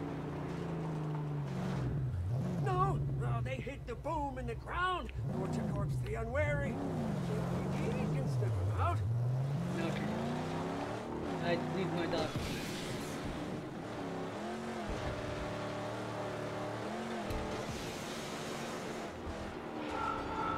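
A car engine roars and revs up and down.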